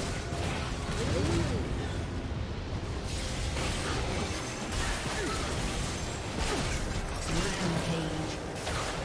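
Video game spell effects whoosh and burst during a busy fight.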